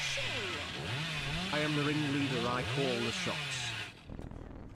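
A chainsaw engine revs up and down.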